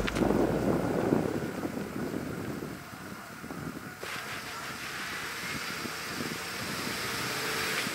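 A truck engine runs as it creeps forward.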